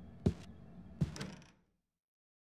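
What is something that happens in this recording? A door opens with a creak.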